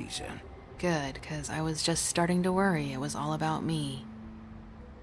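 A young woman speaks calmly and wearily, close by.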